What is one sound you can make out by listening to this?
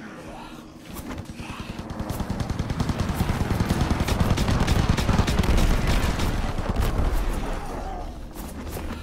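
Anti-aircraft guns fire in rapid bursts.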